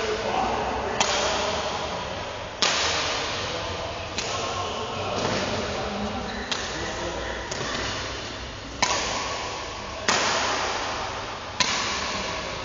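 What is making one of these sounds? Badminton rackets strike a shuttlecock back and forth with sharp pops in a large echoing hall.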